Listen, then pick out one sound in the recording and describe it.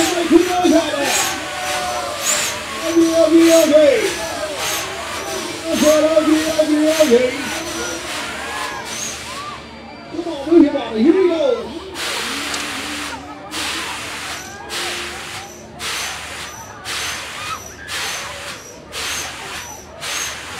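Riders on a spinning fairground ride scream and shout.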